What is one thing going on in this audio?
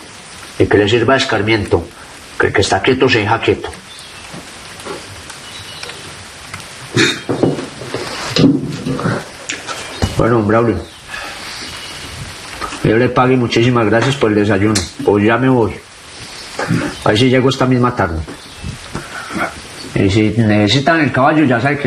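A man speaks intensely, close by.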